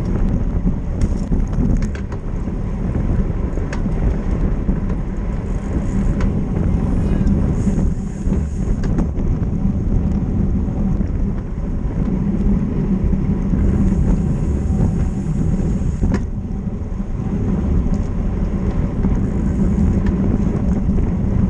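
Wind buffets a microphone loudly as a bicycle rides fast outdoors.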